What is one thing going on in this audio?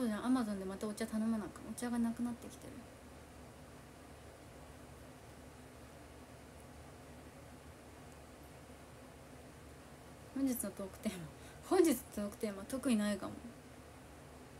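A young woman speaks casually and close to a microphone.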